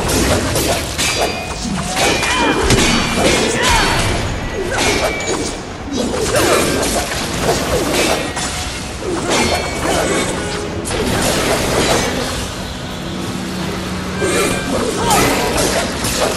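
Creatures snarl and screech.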